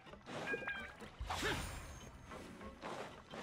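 A gust of air whooshes past as a figure glides.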